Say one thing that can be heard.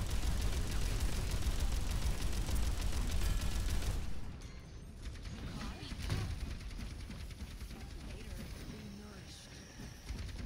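Rapid gunfire blasts and crackles.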